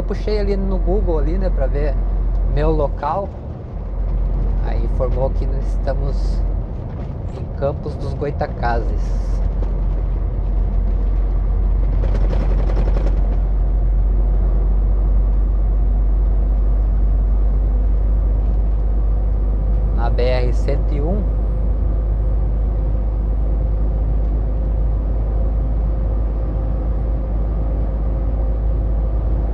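A vehicle engine hums and tyres rumble steadily on the road.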